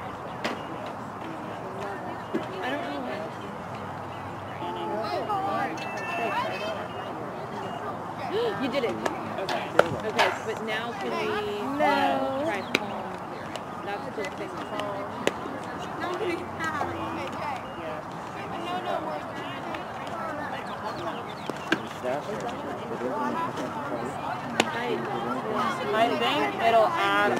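Young women shout and cheer across an open field outdoors.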